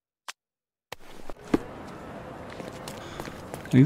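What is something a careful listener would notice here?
Footsteps run quickly on stone pavement.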